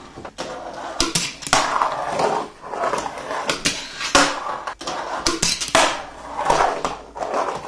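A small metal object knocks against a wooden surface.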